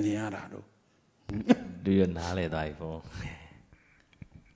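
An elderly man speaks calmly into a microphone close by.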